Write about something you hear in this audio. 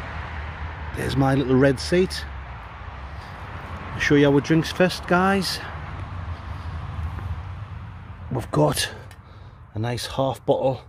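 A young man talks casually close by, in short bursts.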